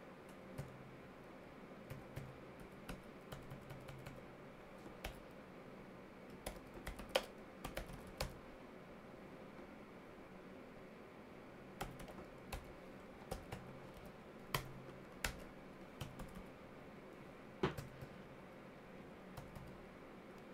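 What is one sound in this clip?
A keyboard clicks in short, irregular bursts of typing.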